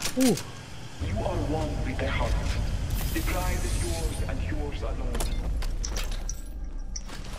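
A low rumbling hiss of gas fills the air.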